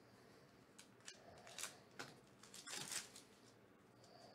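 A foil wrapper crinkles and tears open close by.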